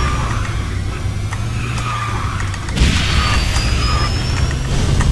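A racing game's engine drones steadily.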